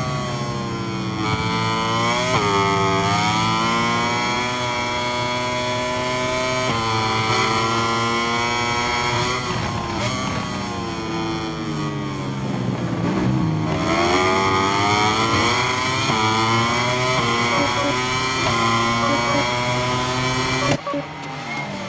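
A racing motorcycle engine screams at high revs, rising and dropping in pitch as it shifts gears.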